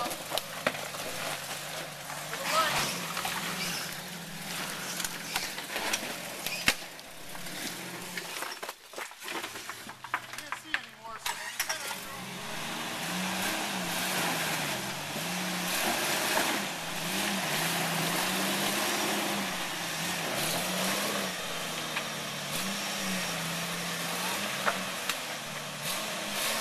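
Tyres grind and scrape over loose rocks.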